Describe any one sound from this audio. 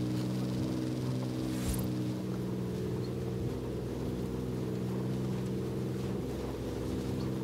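Tyres roll over grass and rough ground.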